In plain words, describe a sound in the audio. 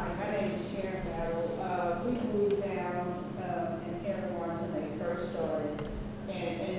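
A woman speaks steadily into a microphone through loudspeakers in a large echoing hall.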